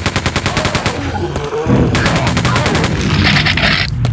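A game machine gun fires.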